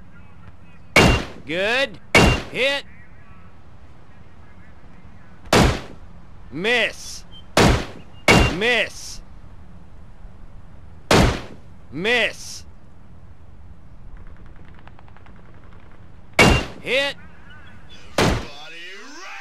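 A rifle fires single loud shots, each followed by a short ringing echo.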